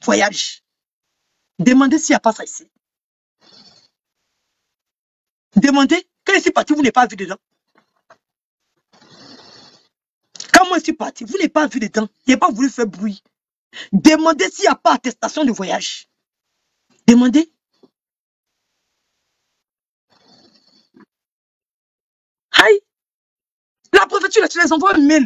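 A young woman talks with animation close to a microphone, in bursts with pauses.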